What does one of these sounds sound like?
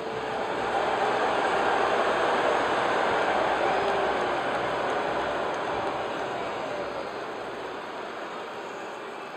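A large crowd cheers and roars steadily in a big arena, slowly fading.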